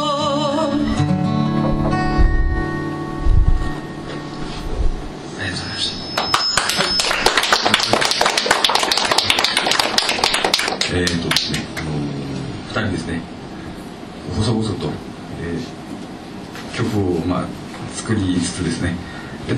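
Two acoustic guitars are strummed together.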